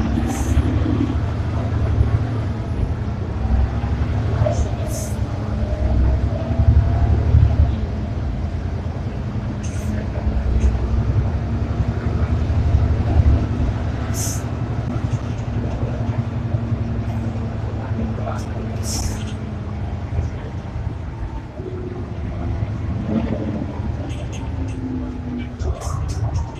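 A bus rattles and creaks over the road.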